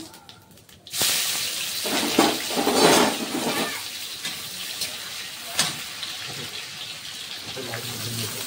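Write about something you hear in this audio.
Sliced onions sizzle in hot oil in a metal wok.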